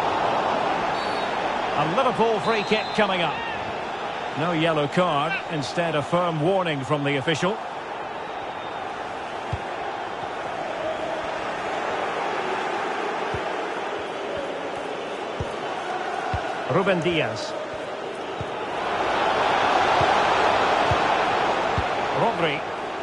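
A large crowd murmurs and chants steadily in a stadium.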